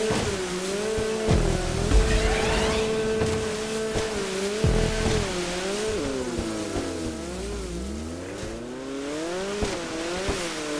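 A jet ski engine whines steadily, rising and falling in pitch.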